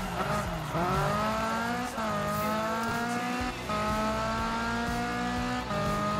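A car engine revs high, climbing in pitch and dropping back at each gear shift.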